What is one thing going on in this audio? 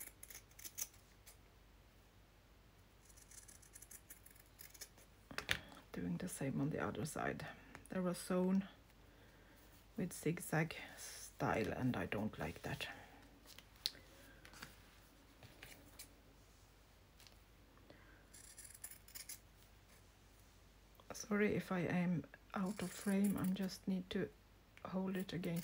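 Scissors snip through fabric.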